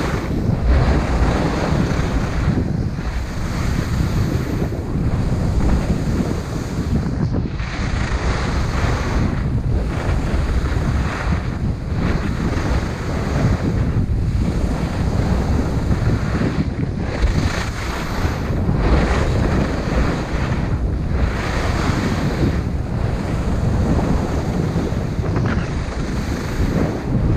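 Skis carve and scrape over hard snow in rhythmic turns.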